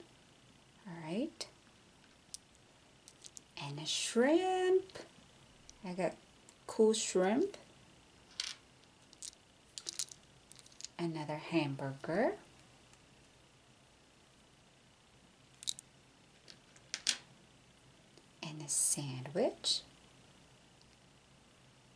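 Small plastic trinkets click and rattle in a hand.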